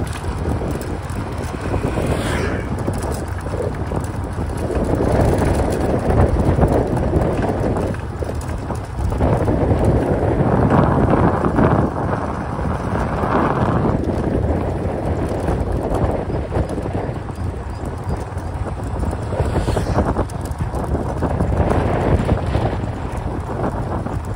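Wind gusts across open ground outdoors.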